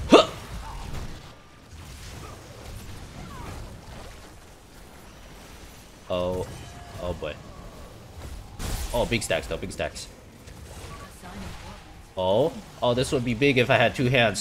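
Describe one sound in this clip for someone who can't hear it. Game spells and hits crackle and whoosh.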